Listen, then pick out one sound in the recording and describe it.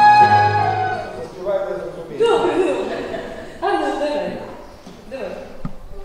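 A woman sings loudly into a microphone in a reverberant room.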